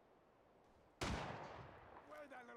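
A pistol fires a single loud shot that rings out briefly.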